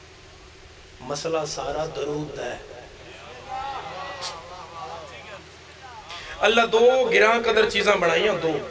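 A young man speaks with passion through a microphone and loudspeakers, his voice rising to loud declaiming.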